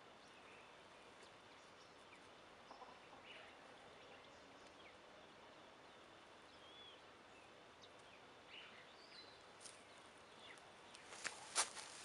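Hands pat and press loose soil close by.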